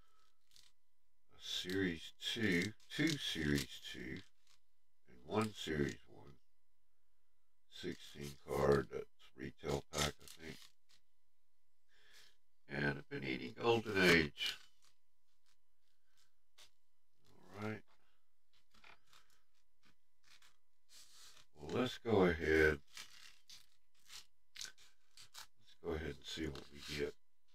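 Foil card packs crinkle in a man's hands.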